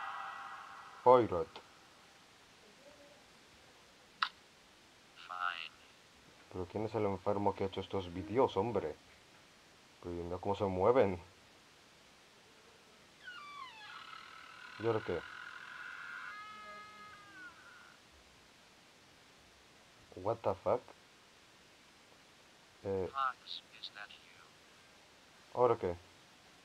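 A man speaks loudly and with animation, close to a microphone.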